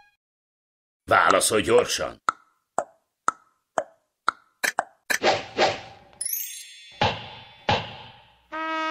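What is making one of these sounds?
Quick clicks and ticks sound one after another.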